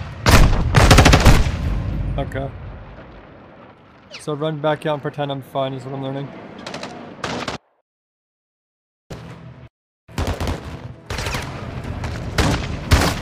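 Rapid gunshots crack at close range.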